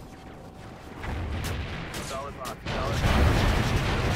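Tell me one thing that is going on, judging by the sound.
A missile explodes with a loud boom.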